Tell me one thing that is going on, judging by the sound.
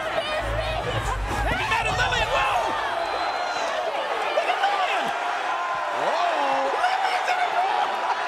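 A woman shouts angrily up close.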